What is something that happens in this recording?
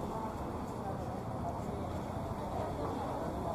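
Many people chatter at outdoor tables nearby.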